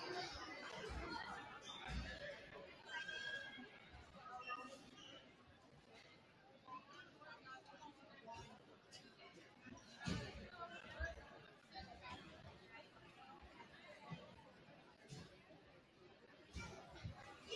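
Basketballs bounce on a wooden floor.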